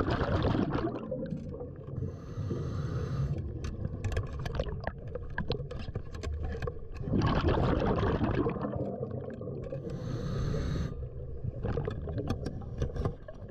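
Metal clips click and clink underwater.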